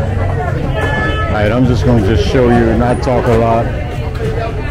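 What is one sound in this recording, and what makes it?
Men and women chat nearby, outdoors.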